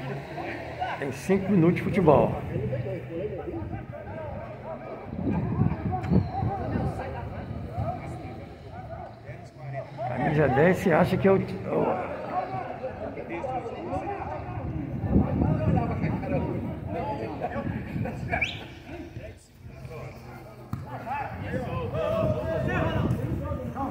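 Men shout and call out across an open football pitch outdoors.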